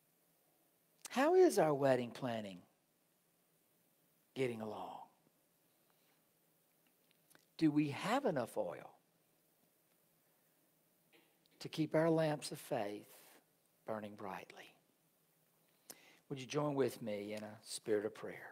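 A man speaks calmly through a microphone with pauses in a quiet, slightly echoing hall.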